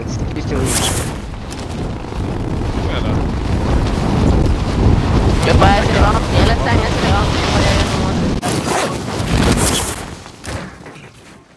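Air rushes loudly past during a fast freefall.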